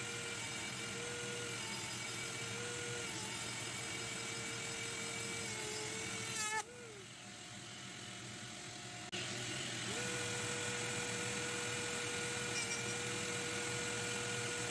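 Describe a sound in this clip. A small rotary tool whines at a steady high pitch.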